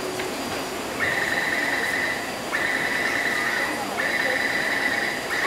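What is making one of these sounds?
A metro train's door warning tone sounds in long repeated beeps.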